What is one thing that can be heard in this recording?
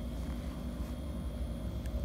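Thread softly rustles as it is pulled through cloth.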